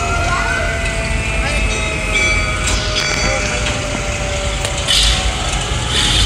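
A fire engine's motor rumbles as it rolls slowly past, close by.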